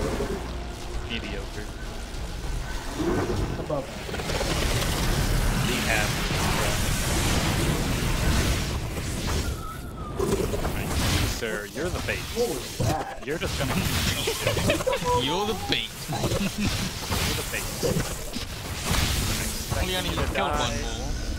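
Wind howls through a snowstorm.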